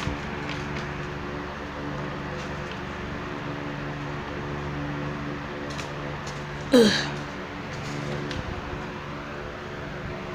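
An electric desk fan hums and whirs.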